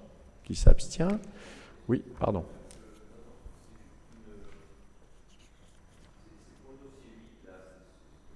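A man speaks calmly into a microphone in an echoing hall.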